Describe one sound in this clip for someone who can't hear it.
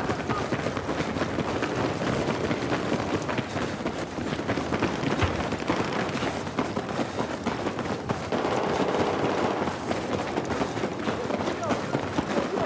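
Rapid gunfire crackles and bangs throughout.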